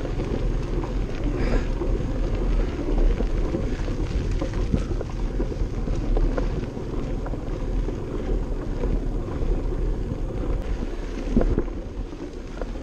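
Bicycle tyres crunch and rattle over a gravel road.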